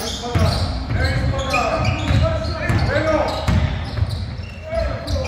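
A basketball bounces on a hard floor in an echoing hall.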